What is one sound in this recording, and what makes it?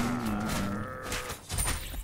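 Fantasy battle sound effects clash and crackle.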